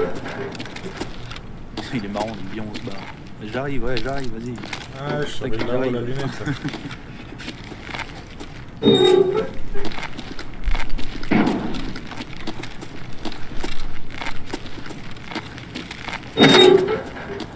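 Footsteps scuff on a gritty concrete floor.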